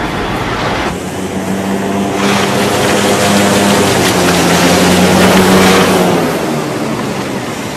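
A hovercraft roars past with a loud drone.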